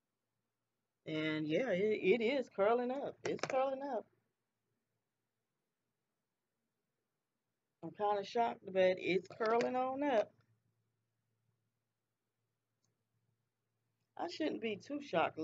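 A woman talks calmly and closely into a microphone, in short bursts with pauses.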